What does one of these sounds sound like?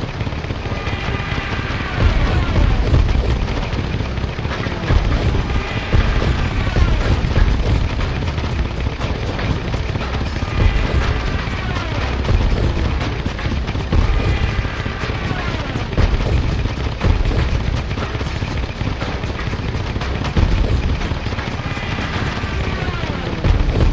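Machine guns rattle in rapid bursts.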